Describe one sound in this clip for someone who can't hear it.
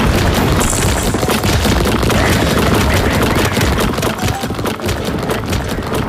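Cartoonish game sound effects pop and thud rapidly.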